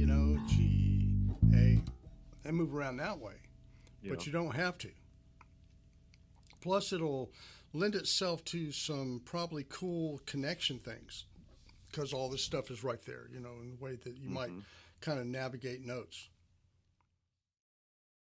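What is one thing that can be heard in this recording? An electric bass guitar plays deep plucked notes.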